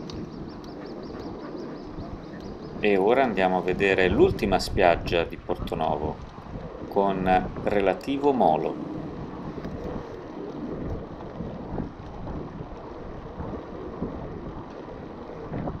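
Bicycle tyres rumble and clatter over wooden boards.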